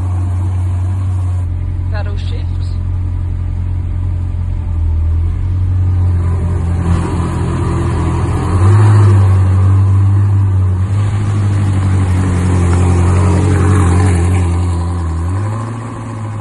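A sports car engine rumbles deeply at idle.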